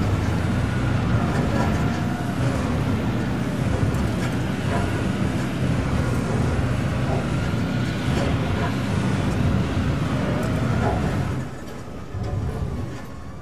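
A vehicle's engine rumbles low and steady as it drives over rough ground, then quietens.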